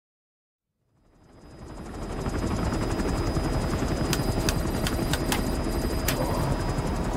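A helicopter's engine and rotors drone steadily from inside the cockpit, rising in from silence.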